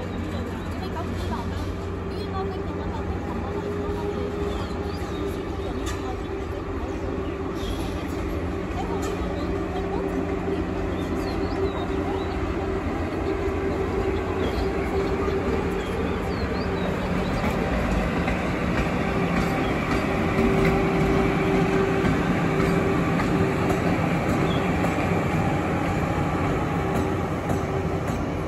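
An electric locomotive hums steadily as it rolls slowly along the tracks, growing louder as it approaches.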